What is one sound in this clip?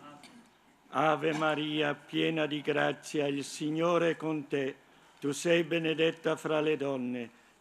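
An elderly man speaks calmly and slowly into a microphone, close by.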